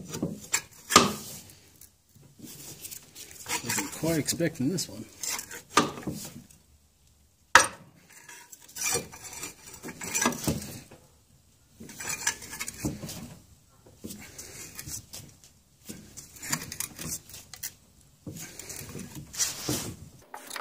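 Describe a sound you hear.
A wrench clicks and scrapes against metal parts.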